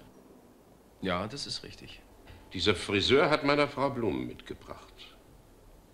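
An elderly man speaks firmly and with emphasis.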